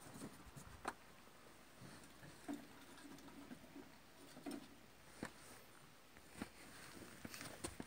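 Small paws patter softly on wooden boards.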